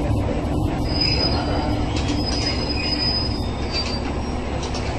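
Train brakes squeal briefly as the train comes to a stop.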